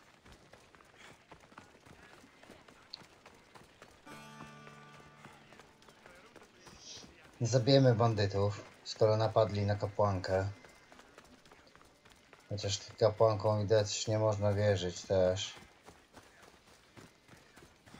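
Footsteps run on a dirt path.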